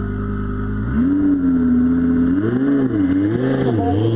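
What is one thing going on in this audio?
A sports car engine revs up and down in loud bursts.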